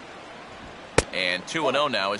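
A ball smacks into a catcher's mitt.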